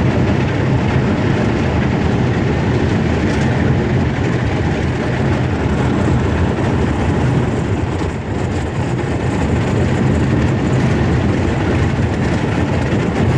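A boat's motor hums steadily.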